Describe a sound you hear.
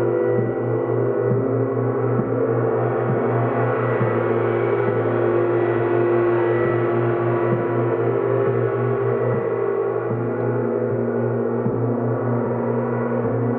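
Large gongs hum and shimmer in a steady, ringing drone.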